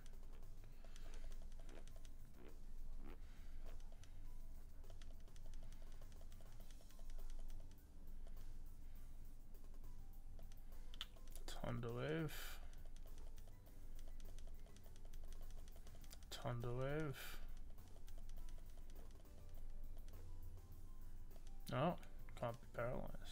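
Upbeat video game music plays steadily.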